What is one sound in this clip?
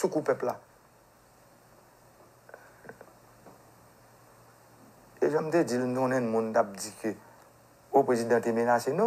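A man speaks close to a microphone, in short bursts with pauses.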